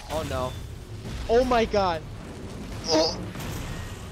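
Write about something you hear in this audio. Metal crashes and clatters in a heavy impact.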